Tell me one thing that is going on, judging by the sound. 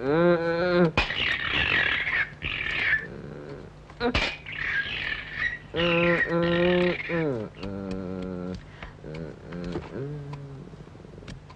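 A young boy shouts and chatters loudly nearby.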